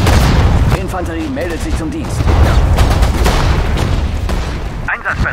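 Explosions and gunfire rumble and crack in a battle.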